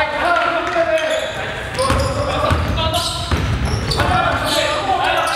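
Sneakers squeak sharply on a hardwood floor in an echoing hall.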